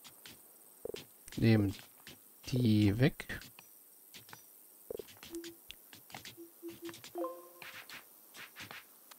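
Soft clicks sound as game blocks are placed.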